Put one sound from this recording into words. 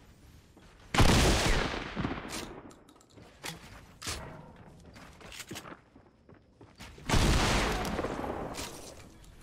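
Loud gunshots boom and echo.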